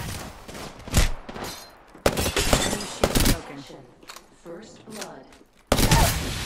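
Guns fire in sharp, quick bursts.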